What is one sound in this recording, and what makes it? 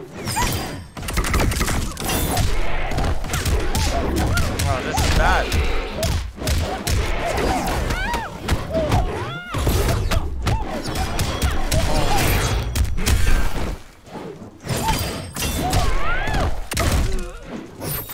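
Punches and kicks land with heavy thuds in a video game fight.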